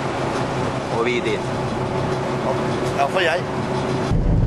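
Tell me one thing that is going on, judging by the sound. A man speaks briefly and casually close by.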